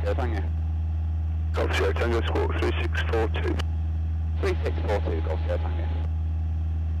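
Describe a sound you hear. A young man speaks calmly over a headset intercom.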